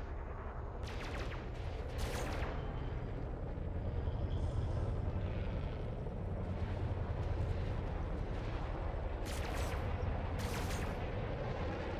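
Laser cannons fire in short bursts in a video game.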